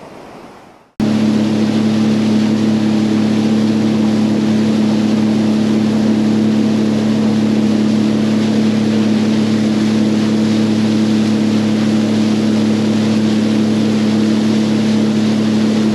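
A large ship's engine hums low and steady.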